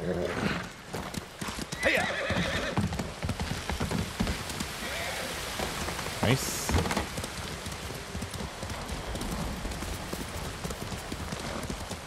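A horse gallops along a dirt path.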